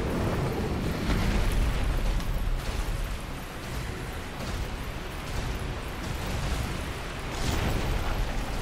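A heavy creature's stomp sends up a rumbling crash.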